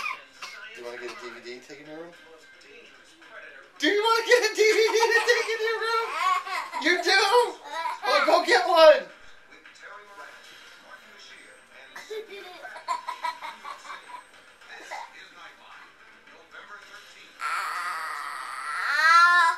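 A young man talks playfully and laughs close by.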